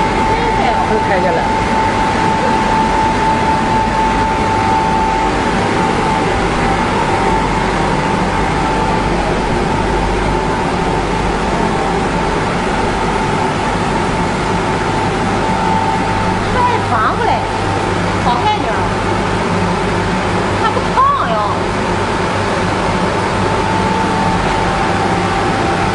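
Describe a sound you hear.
A printing machine hums and whirs steadily.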